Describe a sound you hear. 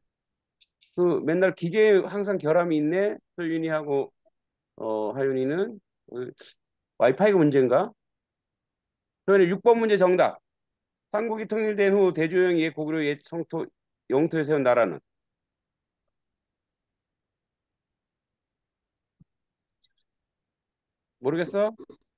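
An older man speaks calmly through an online call.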